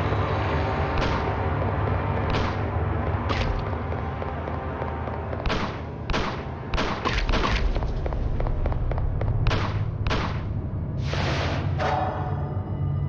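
Game shots fire in quick bursts.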